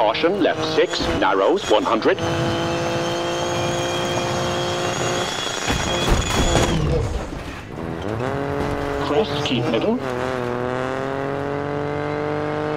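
A rally car engine roars and revs at high speed.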